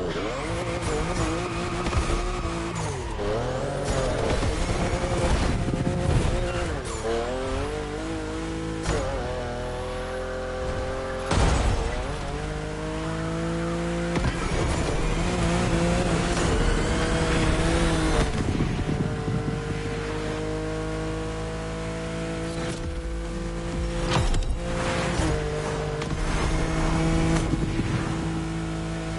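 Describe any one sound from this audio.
A car engine revs hard, rising and dropping as gears shift.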